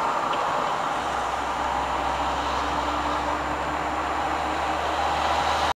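Tyres roar on a motorway, heard from inside a camper van.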